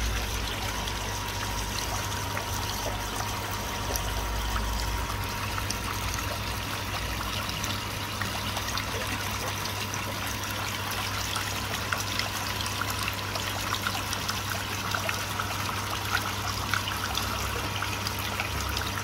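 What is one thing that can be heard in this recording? Water bubbles and trickles steadily nearby.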